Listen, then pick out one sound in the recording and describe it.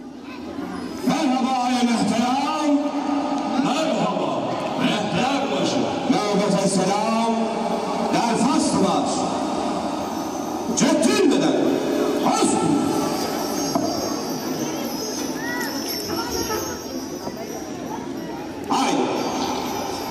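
Shrill reed pipes play a wailing melody.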